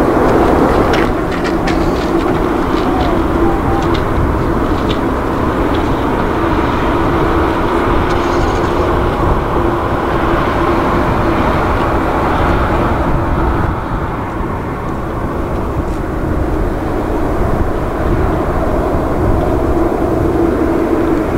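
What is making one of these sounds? A jet airliner's engines whine and rumble as the plane taxis past.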